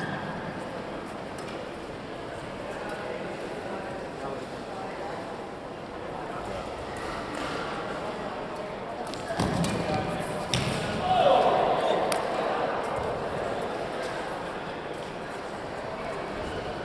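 Young men chatter and call out across a large echoing hall.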